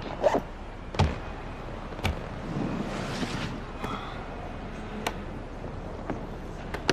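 Hands grab plastic climbing holds with soft knocks.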